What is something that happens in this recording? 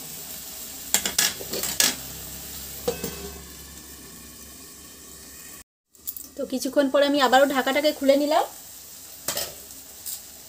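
A metal lid clinks against a pan.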